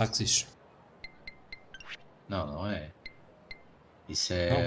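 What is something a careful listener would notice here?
Short electronic menu beeps sound in quick succession.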